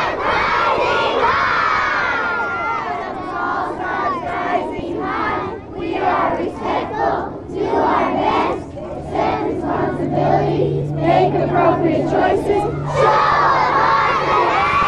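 A group of children sings together outdoors.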